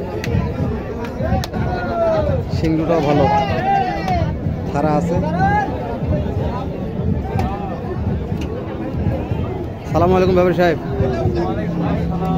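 Many men talk and call out in a busy outdoor crowd nearby.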